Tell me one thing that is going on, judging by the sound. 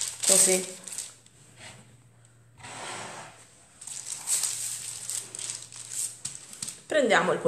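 Parchment paper rustles and crinkles as hands smooth it flat.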